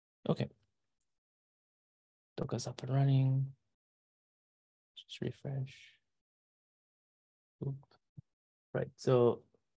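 A man speaks calmly through an online call microphone, in short phrases with pauses.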